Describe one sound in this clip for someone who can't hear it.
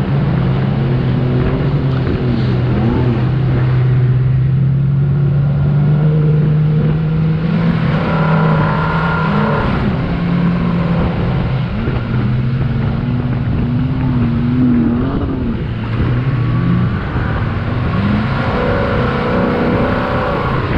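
A car engine roars and revs as it climbs over sand.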